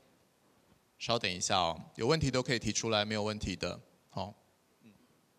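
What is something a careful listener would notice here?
A man announces loudly through a microphone in a large hall.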